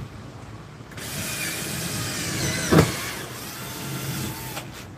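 A cordless drill whirs.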